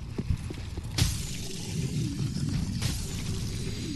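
A sword swings through the air with a sharp swoosh.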